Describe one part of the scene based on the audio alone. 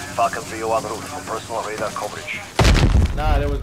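A smoke grenade hisses loudly.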